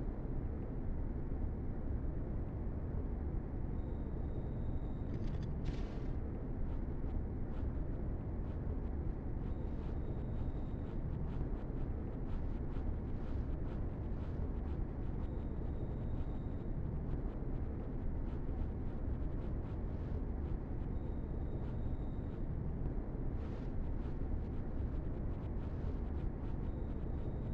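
A rail vehicle rumbles steadily along a track.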